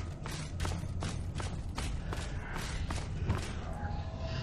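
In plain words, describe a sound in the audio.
Footsteps thud on a stone floor at a steady walking pace.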